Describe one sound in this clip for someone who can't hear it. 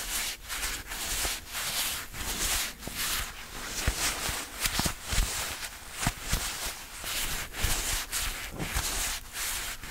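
Leather gloves creak and rustle close to a microphone.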